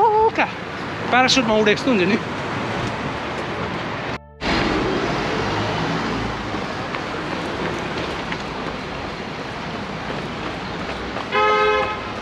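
Traffic hums along a city street outdoors.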